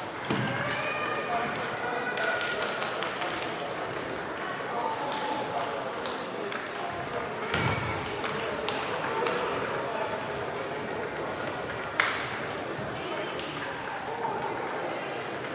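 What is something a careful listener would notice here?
Sports shoes squeak on the hall floor.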